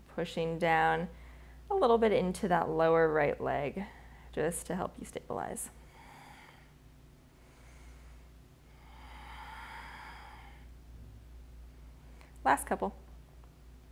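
A woman speaks calmly, as if instructing, close to a microphone.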